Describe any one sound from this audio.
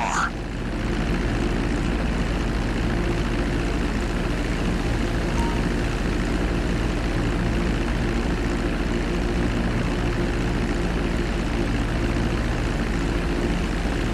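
Twin propeller engines drone steadily as a small plane flies low.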